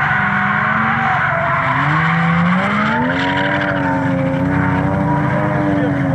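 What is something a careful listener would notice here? Tyres screech on tarmac as a car drifts.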